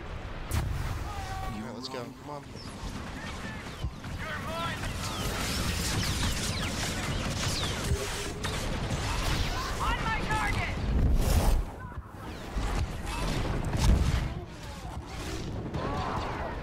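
A lightsaber hums and swishes through the air.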